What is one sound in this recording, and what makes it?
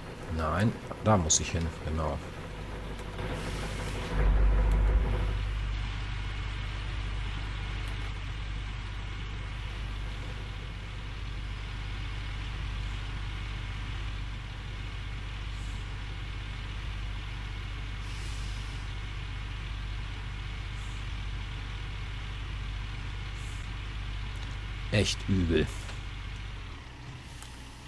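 A large diesel engine rumbles steadily.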